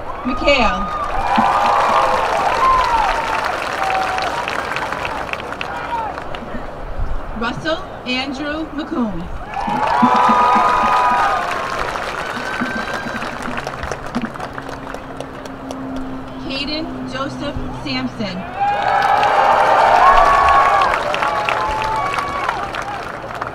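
A crowd cheers and whoops outdoors.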